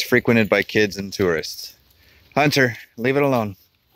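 A dog scratches and digs in loose dirt.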